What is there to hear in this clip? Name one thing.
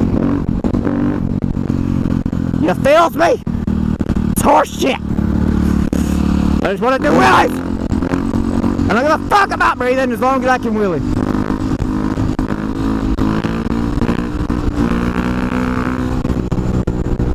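A motorcycle engine drones close by.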